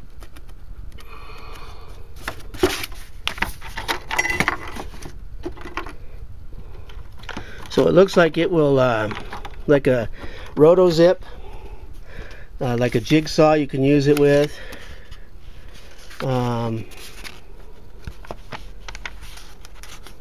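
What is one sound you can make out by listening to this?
Paper pages rustle and flip as they are handled.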